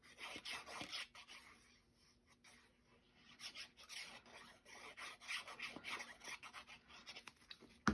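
A glue applicator dabs softly on paper.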